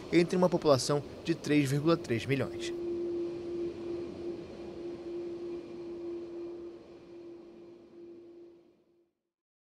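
A jet airliner's engines whine steadily as the plane taxis away.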